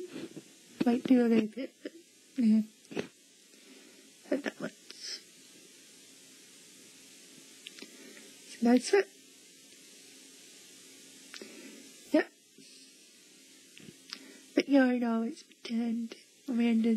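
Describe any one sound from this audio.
A young girl speaks with excitement, close by.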